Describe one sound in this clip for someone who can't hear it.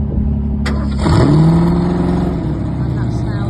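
A V8 sports car engine revs sharply, then settles.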